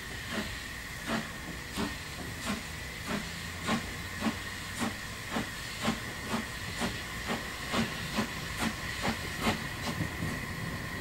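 A steam locomotive chuffs in slow, rhythmic puffs.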